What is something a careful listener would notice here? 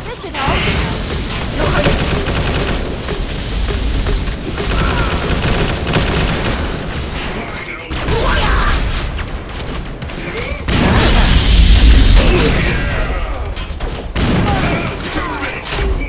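Explosions boom and crash.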